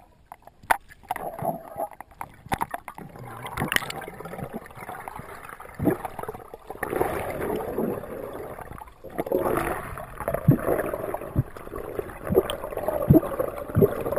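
Air bubbles gurgle and burble underwater in bursts.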